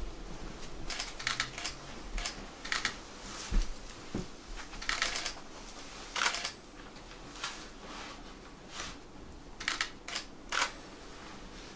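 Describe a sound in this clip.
Leafy branches rustle as they are set down on a straw mat.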